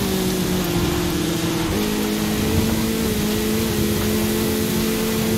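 A buggy engine drones steadily and shifts up a gear.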